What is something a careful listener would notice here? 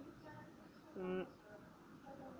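A boy makes a playful silly sound with his voice.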